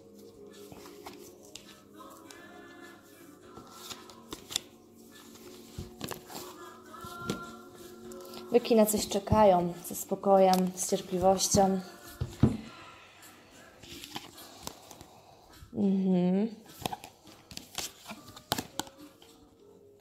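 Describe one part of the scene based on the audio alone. Cards shuffle and slap softly against one another.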